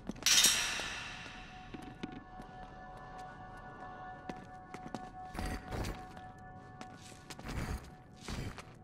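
Footsteps scuff slowly on a hard stone floor.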